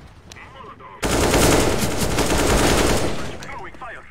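Gunfire rattles loudly in a game.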